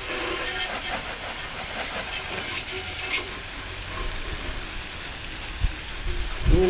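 A hose sprays a steady hiss of water onto a motorcycle and wet pavement.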